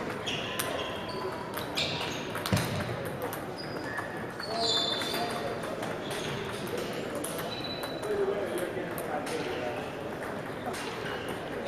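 Table tennis paddles strike a ball in a large hall.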